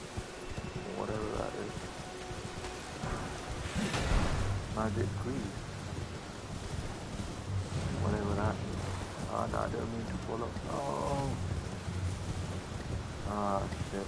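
A man talks casually through an online call.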